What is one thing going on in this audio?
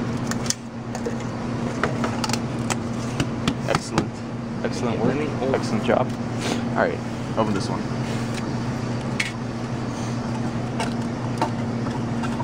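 Plastic cups and lids click and rattle.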